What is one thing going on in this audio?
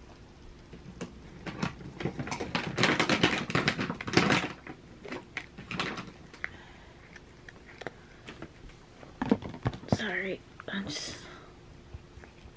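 A cat crunches dry kibble from a bowl.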